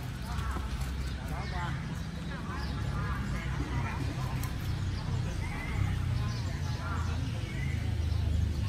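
Badminton rackets strike a shuttlecock outdoors.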